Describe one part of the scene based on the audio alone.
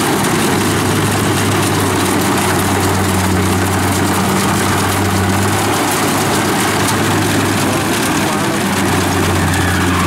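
A combine harvester's engine drones steadily and loudly nearby.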